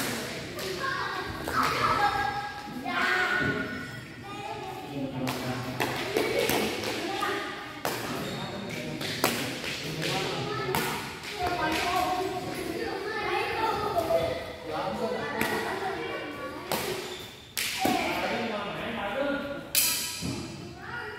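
Rackets smack a shuttlecock back and forth in a large echoing hall.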